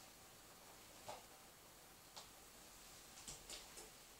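Hands and bare feet thump softly on a wooden floor.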